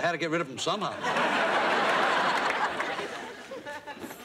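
A studio audience laughs and applauds loudly.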